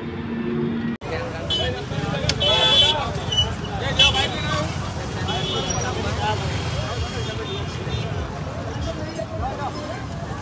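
A crowd of men shout and call out in alarm nearby.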